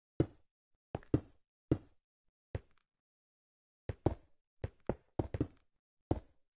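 Stone blocks are placed one after another with short, dull knocks.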